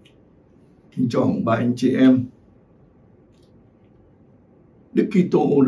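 An elderly man speaks calmly and clearly into a microphone, close by.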